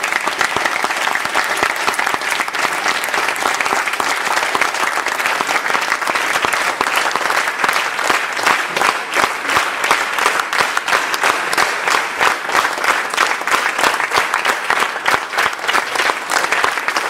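A group of young musicians plays lively music on string instruments in an echoing hall.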